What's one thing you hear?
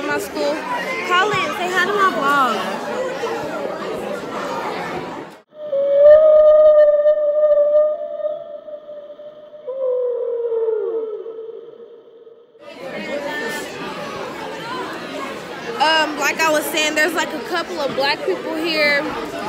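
A teenage girl talks animatedly, close to the microphone.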